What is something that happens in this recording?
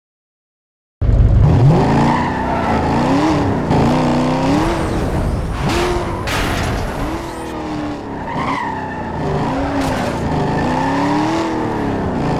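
A racing coupe engine revs hard and climbs through gear changes.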